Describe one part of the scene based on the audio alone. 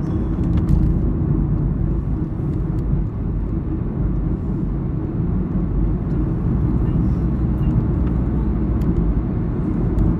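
A car engine hums steadily with road rumble from inside the car.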